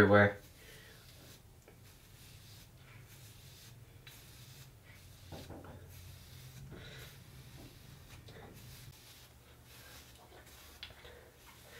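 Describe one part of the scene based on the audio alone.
A comb scrapes through hair.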